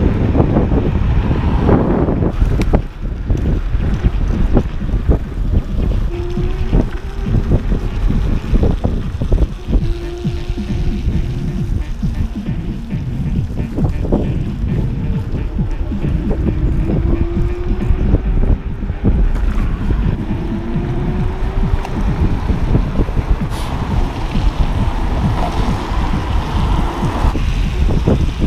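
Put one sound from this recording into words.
Wind rumbles loudly against a microphone outdoors.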